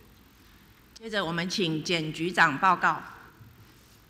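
A woman speaks briefly into a microphone in a large room.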